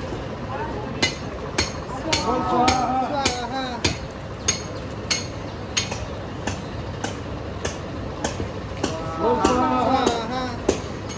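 Water splashes and drips from a canopy in sharp taps.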